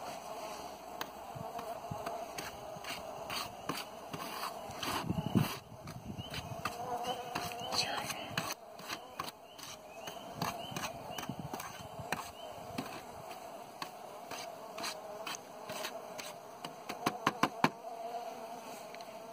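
A metal blade scrapes and taps on a paper plate.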